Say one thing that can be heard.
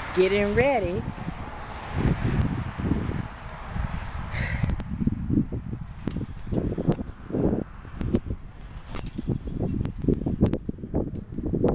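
A key rattles and clicks in a metal padlock on a chain-link gate.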